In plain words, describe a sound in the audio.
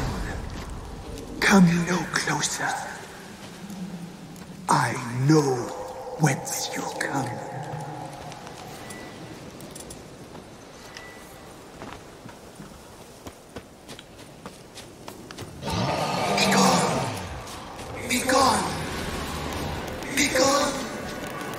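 Footsteps rustle through grass and undergrowth.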